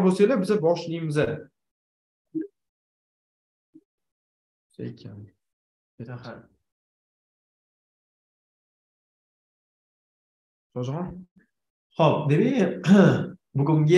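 A young man speaks calmly in short phrases with pauses, heard through an online call.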